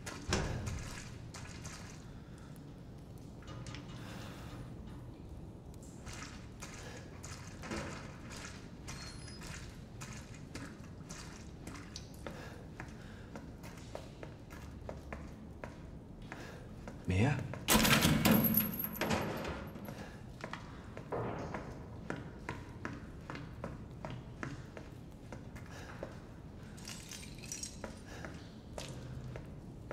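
Footsteps walk slowly over a hard floor.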